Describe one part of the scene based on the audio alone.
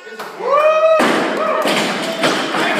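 A heavy barbell crashes down onto the floor and bounces.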